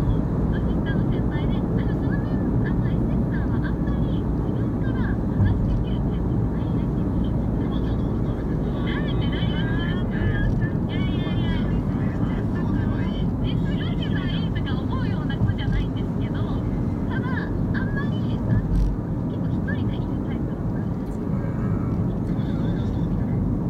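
A car engine hums steadily as tyres roll over a highway.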